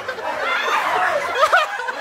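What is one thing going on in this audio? A woman shrieks with laughter up close.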